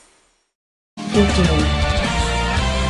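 A victory jingle plays.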